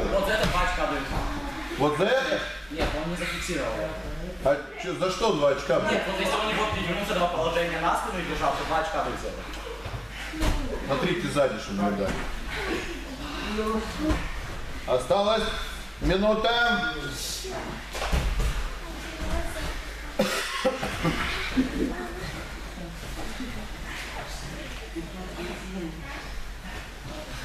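A man talks loudly nearby in an echoing room.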